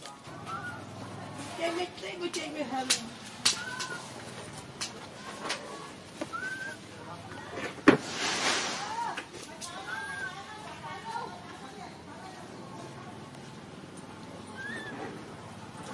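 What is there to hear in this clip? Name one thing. A baby macaque gives high squeaking coos.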